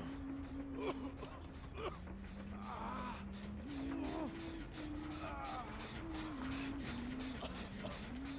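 A man talks close to a microphone.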